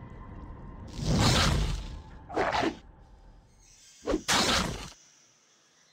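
Magic blasts burst in short, loud whooshes.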